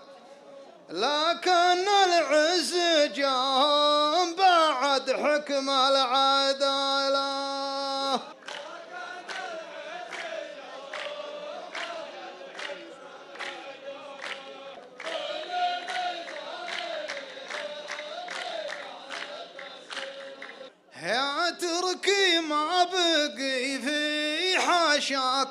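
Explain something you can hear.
A man chants a poem loudly through a microphone.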